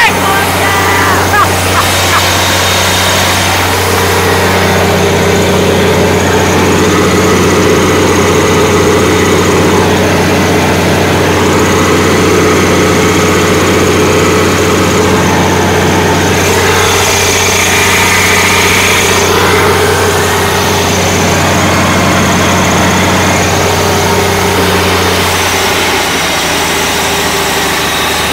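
A large diesel engine drones loudly and steadily.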